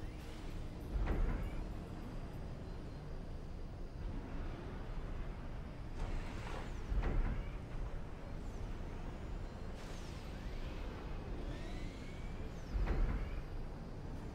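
Explosions boom every few seconds.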